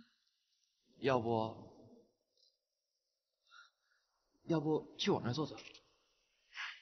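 A young man speaks quietly nearby.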